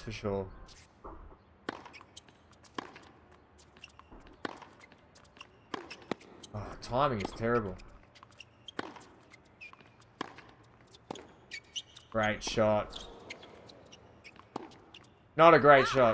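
A tennis ball is struck with sharp pops.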